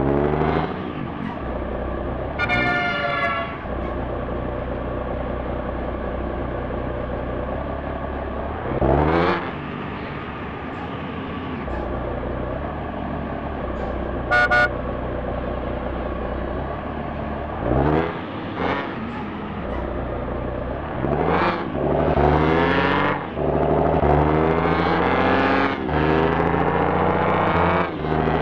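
A car engine hums at low speed, then revs up again and again as the car speeds up.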